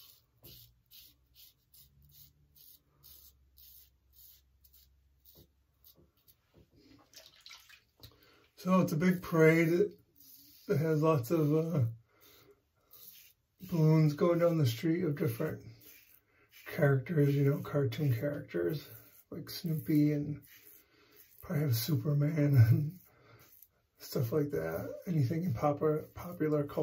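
A man scrapes stubble with a razor in short strokes.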